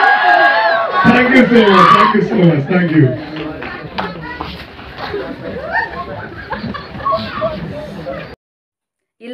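An audience chatters in a large room.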